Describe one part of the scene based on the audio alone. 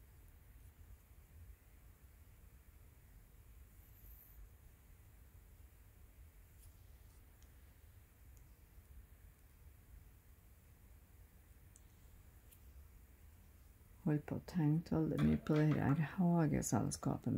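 Thread softly rasps as it is pulled through cloth.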